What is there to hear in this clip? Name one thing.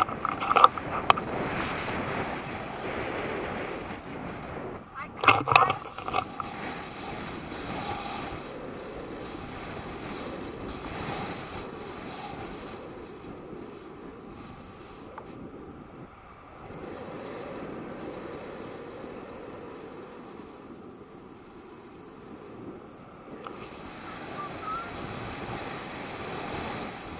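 Wind rushes steadily past a microphone outdoors.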